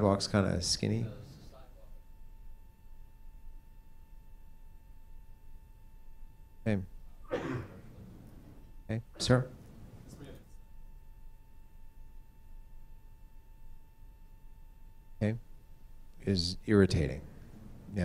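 A man speaks through a microphone in a large room, in short bursts with long pauses.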